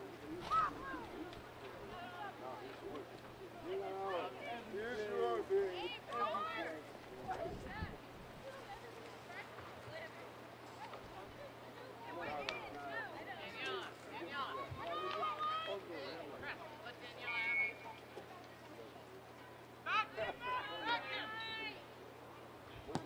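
Young women players cheer and shout across an open field.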